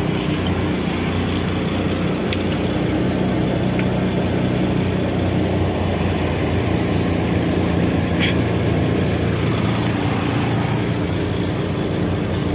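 A large diesel engine rumbles steadily from inside a vehicle cab.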